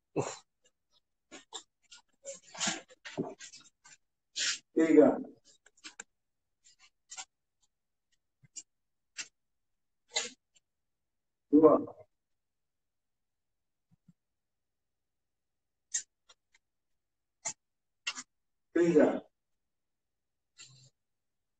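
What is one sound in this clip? A marker squeaks across paper.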